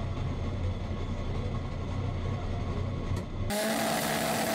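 A race car engine idles with a deep rumble.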